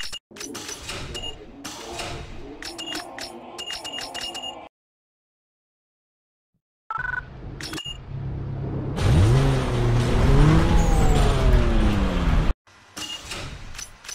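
Short electronic menu beeps sound several times.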